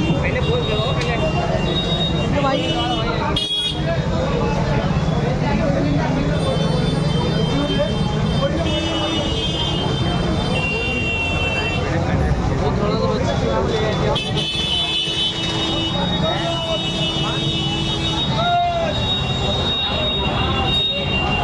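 Several men talk loudly and excitedly nearby, outdoors.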